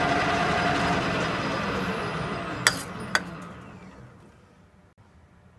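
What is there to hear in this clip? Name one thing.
A lathe winds down and falls quiet.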